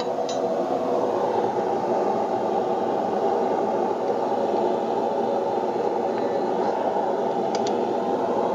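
Metal tongs clink against a steel rod.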